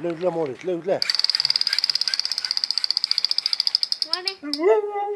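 A toy gun buzzes loudly with a rapid electronic rattle.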